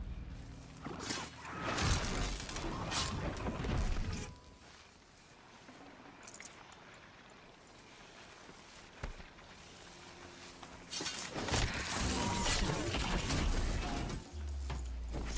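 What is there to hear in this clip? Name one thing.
Metal clangs and crashes as a machine beast is struck in a fight.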